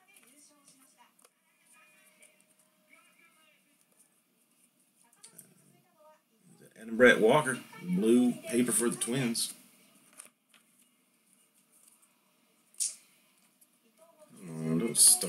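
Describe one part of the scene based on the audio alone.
Trading cards rustle and click as they are flipped through by hand.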